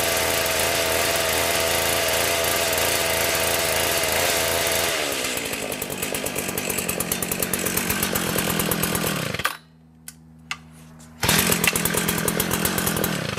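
A small petrol engine runs loudly, its speed changing as the throttle is worked.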